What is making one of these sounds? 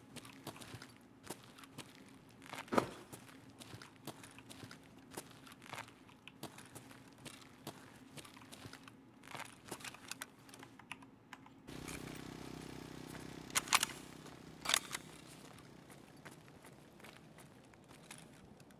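Footsteps tap and scuff on a hard floor.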